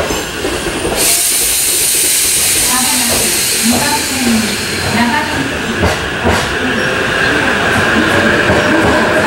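Train wheels clatter over the rail joints.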